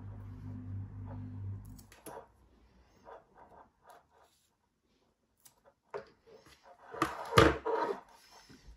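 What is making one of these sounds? Scissors snip through a cord.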